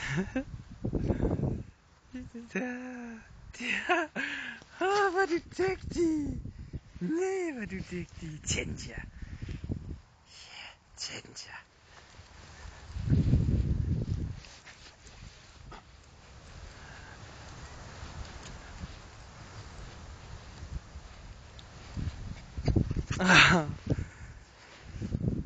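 Wind buffets loudly in gusts outdoors.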